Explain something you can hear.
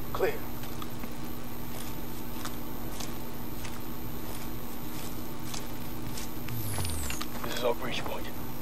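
Footsteps tread softly on wet grass and gravel.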